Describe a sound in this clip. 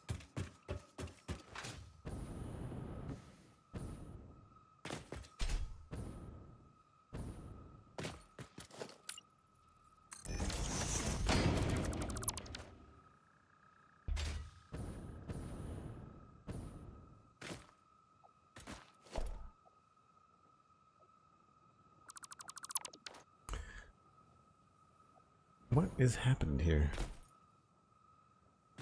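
Footsteps tap quickly on a metal floor.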